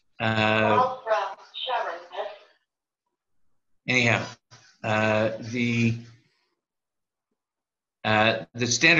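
An elderly man speaks calmly through an online call, in bursts with pauses.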